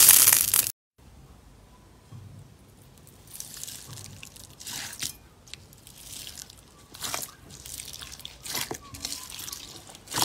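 Water beads rustle and squish as a hand presses and stirs them.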